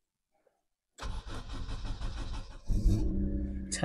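A car's starter motor cranks.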